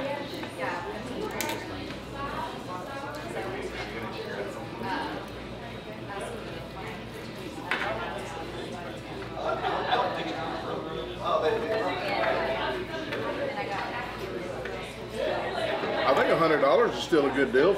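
A knife and fork scrape and clink on a plate.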